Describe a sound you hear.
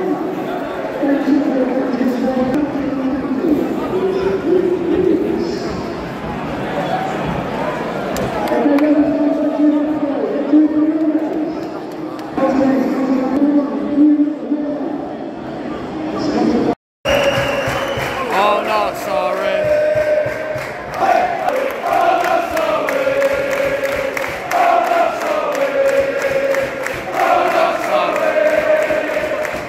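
A large crowd of fans sings and chants loudly outdoors.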